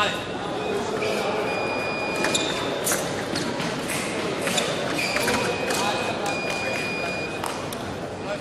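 Electronic scoring beeps sound in short steady tones.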